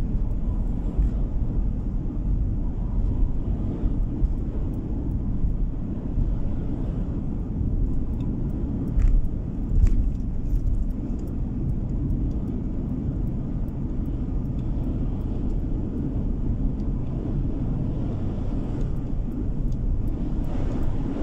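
Tyres roll on smooth pavement.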